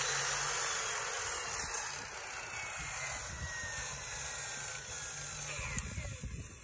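A power saw whirs loudly, then slowly winds down.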